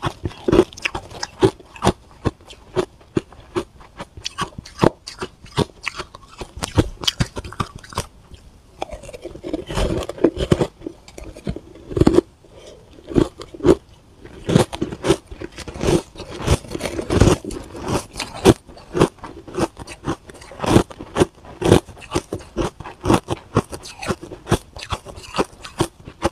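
A young woman crunches and chews ice close to a microphone.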